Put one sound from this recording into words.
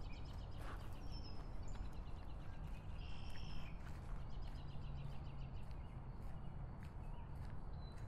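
A woman's footsteps fall on a paved path outdoors.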